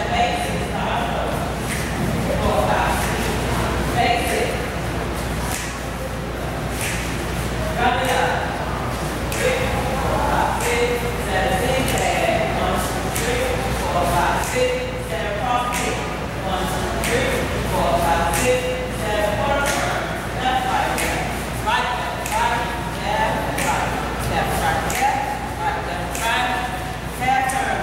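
Several people's feet shuffle and step on a hard floor.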